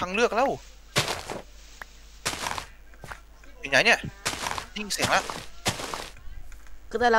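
Leaves rustle and crunch as they are broken in short bursts.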